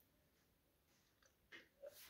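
A woman sips a drink.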